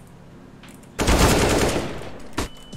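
Rifle shots fire in a rapid burst.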